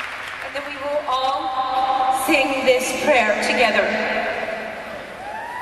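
A woman speaks with emotion through a microphone.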